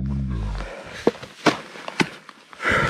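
Snowshoes crunch on snow.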